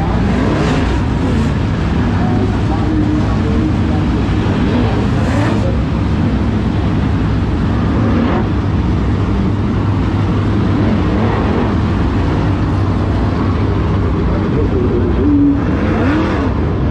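Race car engines roar loudly around a dirt track, outdoors.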